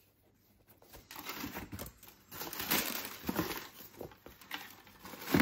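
Tissue paper rustles and crinkles in a cardboard box.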